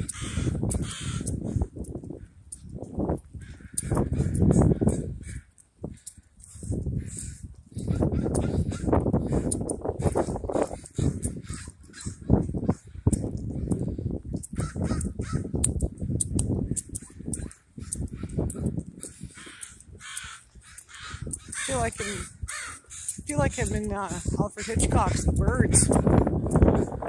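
Crows caw loudly outdoors.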